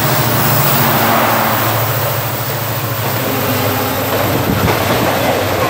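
A train rushes past loudly with a steady roar and rumble.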